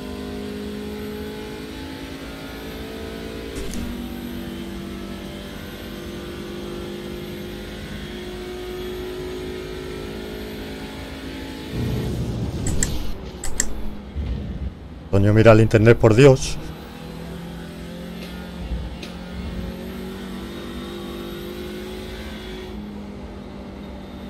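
A racing car engine drones steadily, its pitch shifting as it changes gear.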